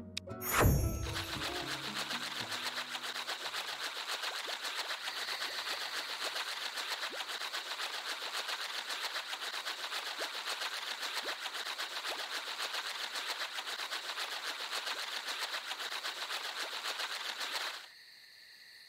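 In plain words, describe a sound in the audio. Small wheels rattle quickly over rough ground.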